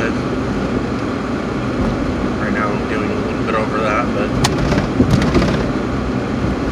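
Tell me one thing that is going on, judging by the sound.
A car engine rumbles steadily inside a moving car.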